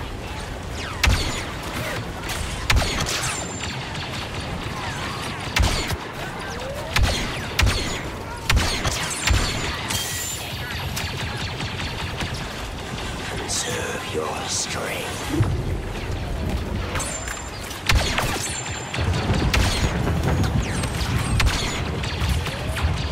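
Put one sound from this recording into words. A sci-fi blaster rifle fires sharp shots.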